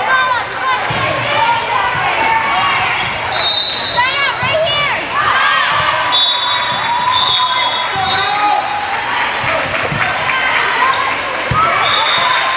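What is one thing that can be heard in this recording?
A volleyball is hit with a hard slap.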